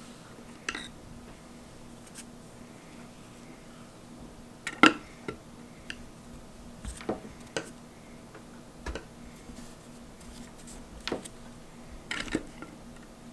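A thin rod taps lightly on paper.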